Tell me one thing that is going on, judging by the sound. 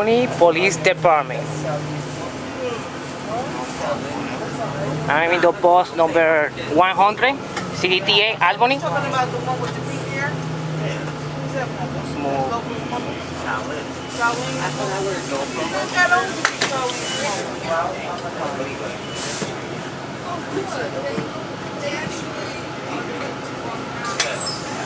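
A bus engine hums steadily while the bus drives along.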